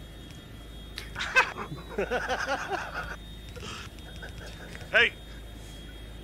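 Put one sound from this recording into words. A young man laughs and talks close to a microphone.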